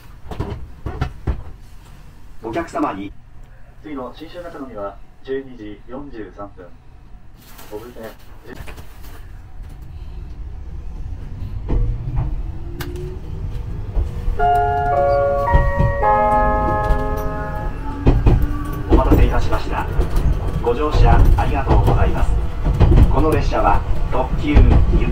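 A train rumbles along the tracks, growing louder as it picks up speed.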